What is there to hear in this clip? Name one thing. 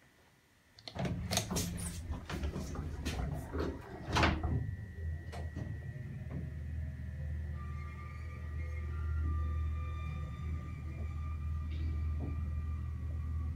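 An elevator car hums and rumbles low as it travels.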